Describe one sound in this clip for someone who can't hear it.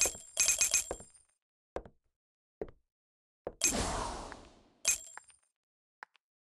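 Bright electronic chimes ring in quick bursts.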